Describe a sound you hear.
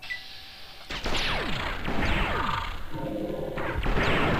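An energy weapon fires a crackling blast.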